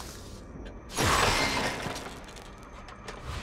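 A loud whooshing burst sounds as an upgrade is confirmed.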